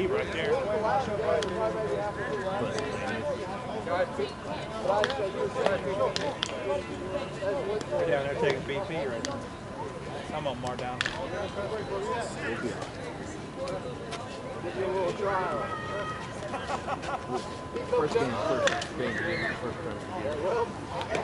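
Several men call out and talk across an open field outdoors.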